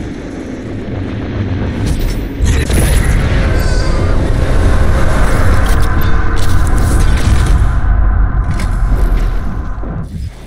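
Electric energy crackles and roars loudly, then swells into a deep rumbling whoosh.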